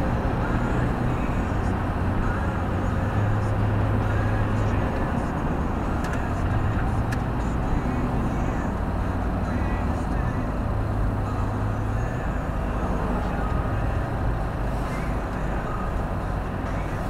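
Tyres roar steadily on a motorway.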